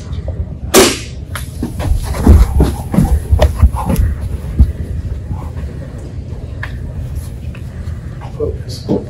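A man speaks loudly nearby in a room.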